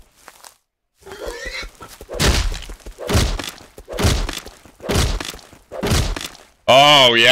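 An axe thuds heavily into a sheep, again and again.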